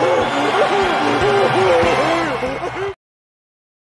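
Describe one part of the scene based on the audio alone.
A cartoon character cheers loudly.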